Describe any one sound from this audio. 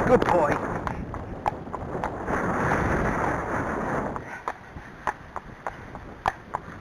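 A horse's hooves clop steadily on a hard path.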